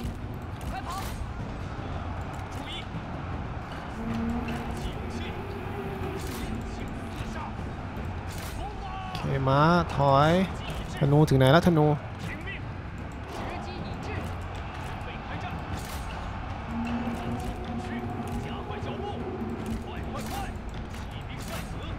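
Weapons clash and clang in a large, noisy battle.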